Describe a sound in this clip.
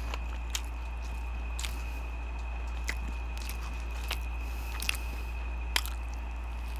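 A man chews crunchy fried food close to a microphone.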